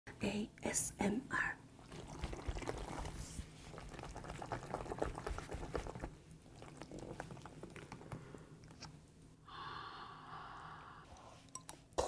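Noodles are slurped and chewed close to a microphone.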